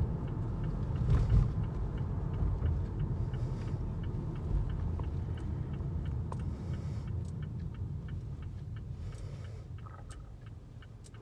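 A car drives along with a steady road rumble inside the cabin, which fades as the car slows to a stop.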